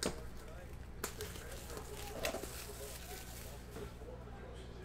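Plastic wrap crinkles as it is torn off.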